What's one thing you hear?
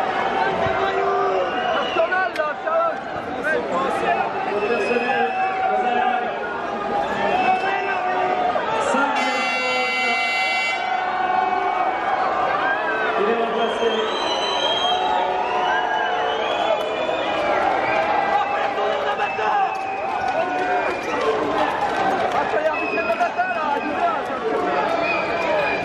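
A large crowd chatters and calls out in a large echoing indoor arena.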